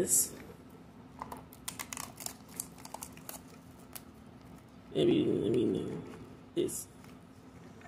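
Plastic packaging crinkles and rustles as hands tear it open.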